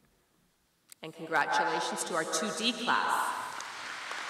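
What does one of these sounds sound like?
A woman speaks into a microphone, announcing over loudspeakers in a large hall.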